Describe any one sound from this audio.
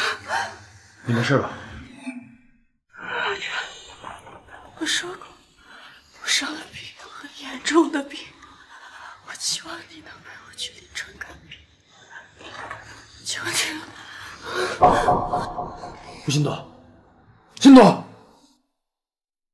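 A young woman speaks in pain, groaning, close by.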